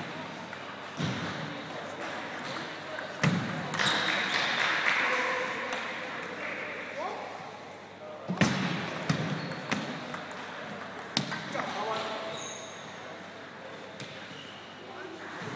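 A table tennis ball clicks back and forth across a table and off paddles.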